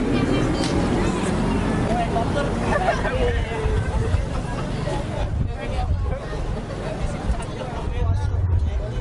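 A crowd chatters outdoors nearby.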